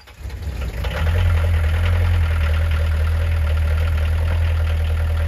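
A diesel engine idles with a loud, steady rumble.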